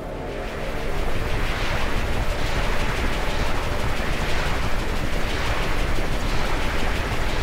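A loud magical whirlwind roars and whooshes steadily.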